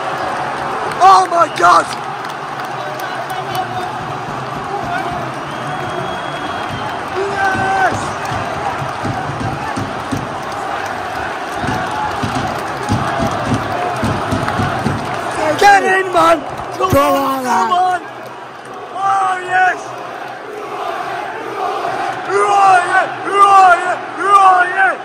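Men nearby shout and chant excitedly.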